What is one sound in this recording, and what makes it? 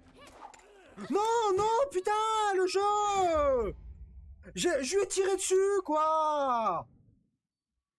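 A young man calls out loudly in a drawn-out voice, close to a microphone.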